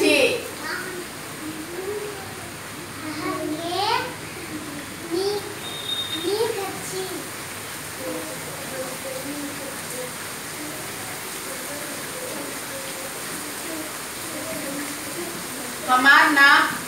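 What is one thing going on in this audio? Children murmur quietly nearby.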